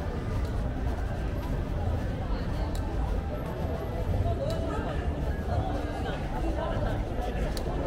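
Men and women chatter nearby in a lively street crowd.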